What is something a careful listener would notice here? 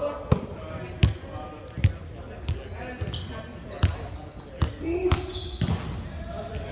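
A volleyball thumps against hands and arms, echoing in a large hall.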